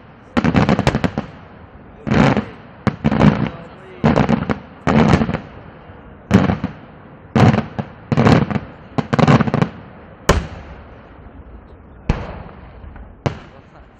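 Blasts boom again and again outdoors.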